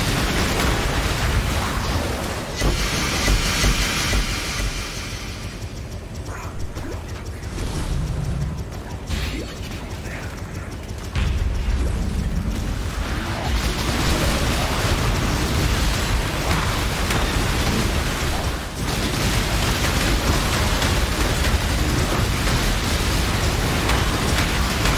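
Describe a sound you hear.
Magic spells crackle and blast in rapid bursts during a fight.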